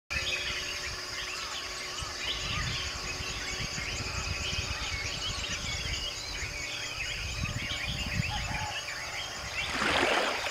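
A flock of birds chirps and calls.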